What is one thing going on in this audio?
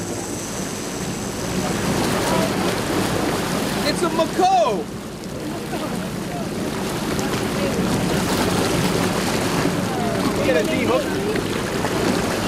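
A fish thrashes and splashes at the water's surface close by.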